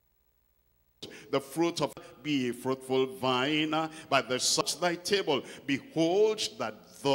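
An elderly man preaches with animation into a microphone, heard through a loudspeaker.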